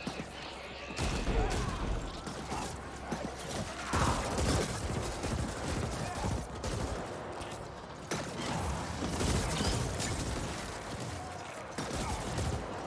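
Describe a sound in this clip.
Gunfire and explosions crackle and boom from about halfway on.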